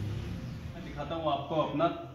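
A middle-aged man speaks close by with animation.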